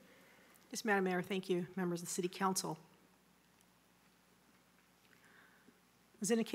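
A woman speaks calmly into a nearby microphone.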